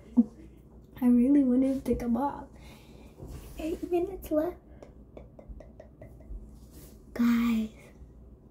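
A young girl hums and sings a few notes.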